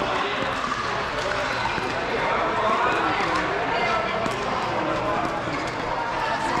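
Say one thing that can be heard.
Several adults chat at a distance in a large, echoing hall.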